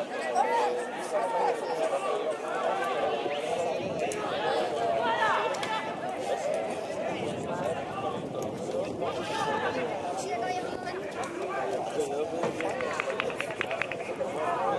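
Distant players shout and call out across an open outdoor pitch.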